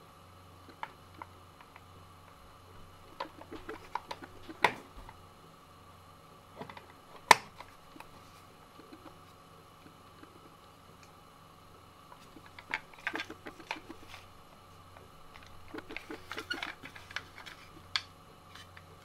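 A plastic cassette case clicks and rattles as hands turn it over.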